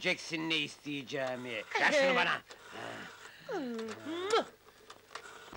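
A man talks and laughs excitedly up close.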